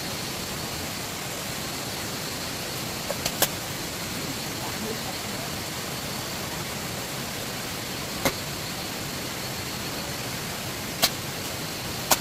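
Hands pat and press damp soil.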